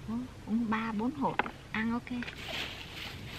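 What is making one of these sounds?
A young woman speaks briefly nearby.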